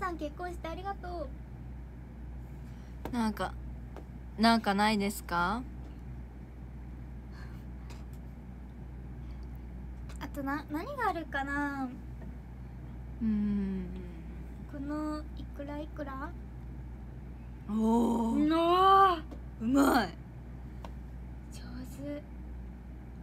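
A young woman talks casually and close by, heard through a phone's microphone.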